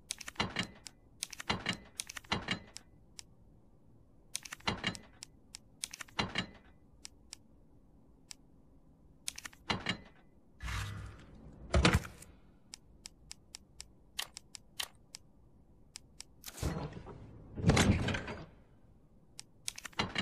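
Short menu clicks tick quickly as a cursor steps through a list.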